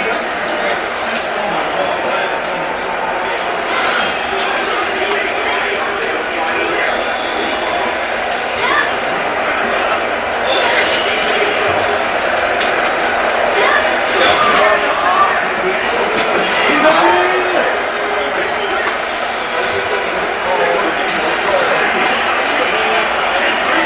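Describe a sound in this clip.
Game music plays throughout.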